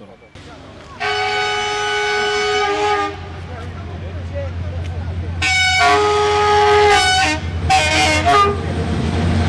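A train horn blares loudly several times.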